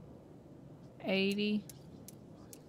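A young woman speaks briefly with a short exclamation into a close microphone.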